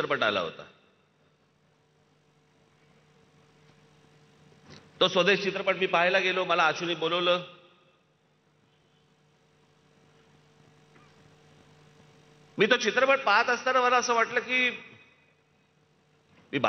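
A man speaks forcefully through a microphone and loudspeakers, in bursts with pauses.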